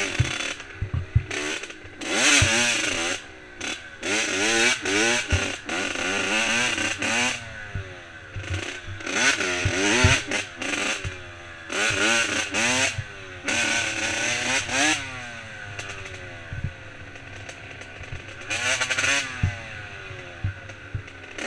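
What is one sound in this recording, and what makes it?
A dirt bike engine revs up and down, rising and falling in pitch.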